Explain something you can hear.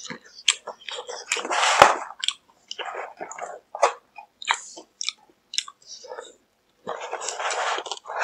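A paper bag crinkles and rustles close by.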